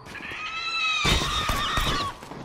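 A rifle fires a loud burst of shots.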